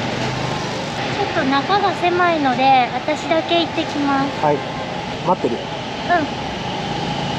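A woman talks close by, calmly.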